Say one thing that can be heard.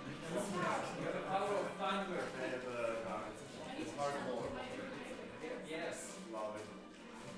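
Young men talk and laugh nearby.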